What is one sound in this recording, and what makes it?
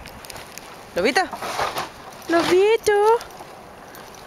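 A dog whines and yowls in short, rising and falling cries.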